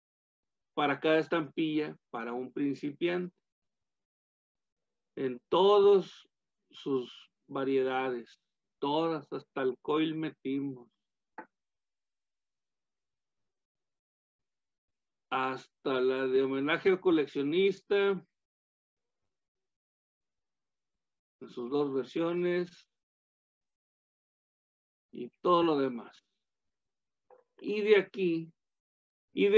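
An older man speaks calmly over an online call, in short bursts with pauses.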